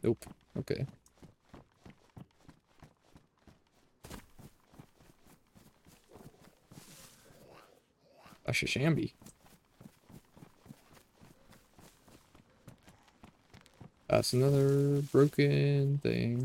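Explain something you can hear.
Footsteps swish through grass at a steady pace.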